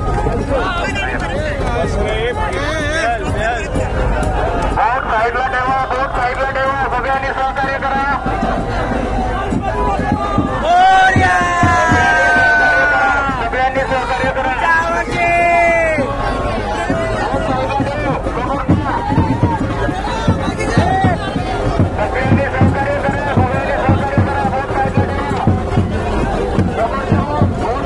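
A large crowd of men chants and cheers loudly outdoors.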